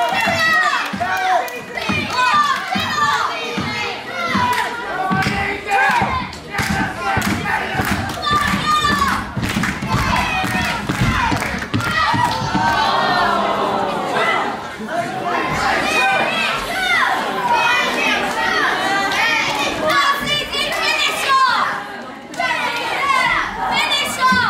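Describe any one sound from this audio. A crowd of children and adults cheers and chants loudly.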